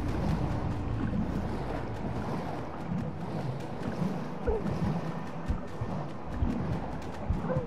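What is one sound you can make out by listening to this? Bubbles gurgle and burble underwater as a diver breathes out.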